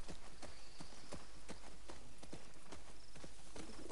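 Leaves and ferns rustle as a horse brushes through them.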